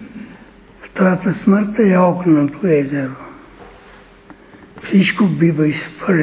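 An elderly man speaks with animation.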